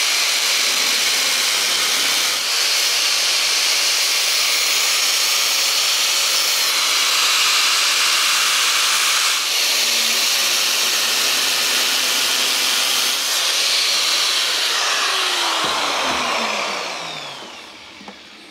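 An angle grinder cuts through metal with a loud, steady whine, then winds down.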